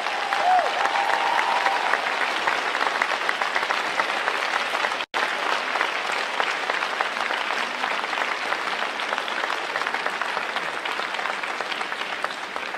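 A crowd applauds steadily in a large echoing arena.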